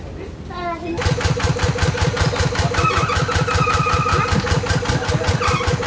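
A tractor engine chugs loudly and steadily.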